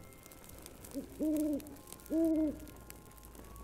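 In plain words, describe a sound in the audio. An owl hoots twice.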